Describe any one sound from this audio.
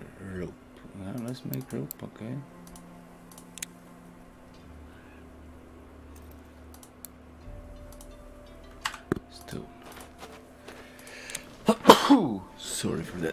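Soft interface clicks tick now and then.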